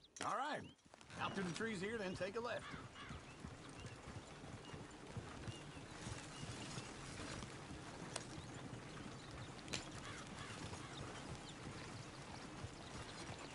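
A horse-drawn wagon rumbles and creaks along a dirt track.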